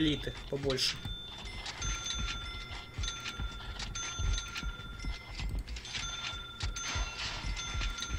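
Short electronic blips chime in quick succession.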